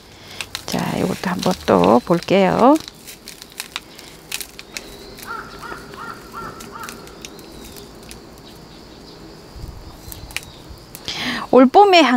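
Soil and gravel crunch and rustle under fingers.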